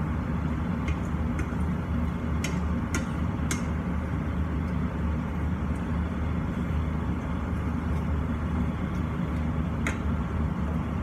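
A wooden spatula scrapes and clacks against a pan.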